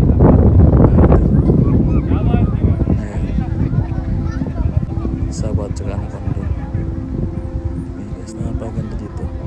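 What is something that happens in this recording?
Wind gusts loudly across the microphone outdoors.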